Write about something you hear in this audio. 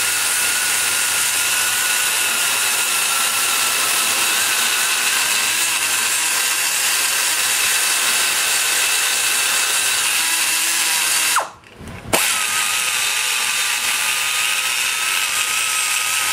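A small high-speed grinder whines steadily as it grinds metal.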